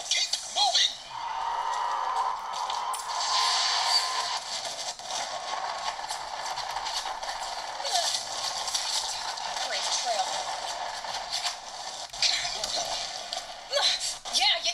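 Game sounds play from a small handheld speaker.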